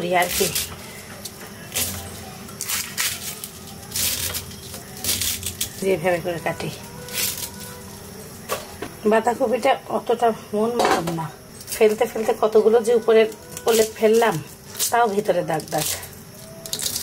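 A knife chops through cabbage on a wooden board.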